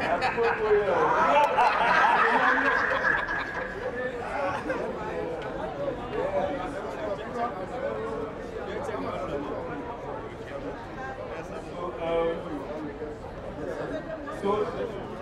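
A crowd of men and women chatter and laugh outdoors.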